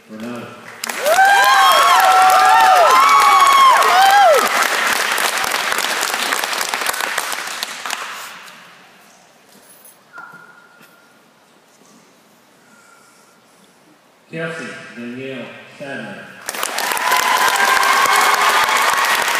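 People clap loudly.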